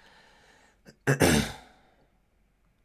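A man laughs briefly close to a microphone.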